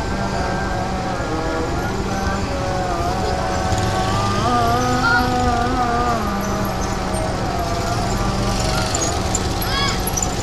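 A diesel locomotive engine rumbles loudly as the train approaches.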